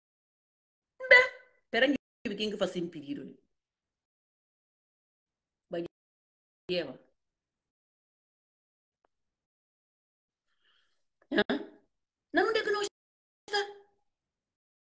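A woman speaks calmly and closely into a phone microphone, in short bursts with long pauses.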